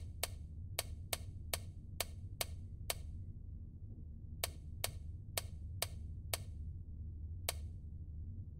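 A combination dial clicks sharply as it turns, notch by notch.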